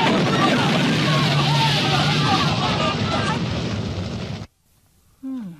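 An explosion roars with a loud rushing blast.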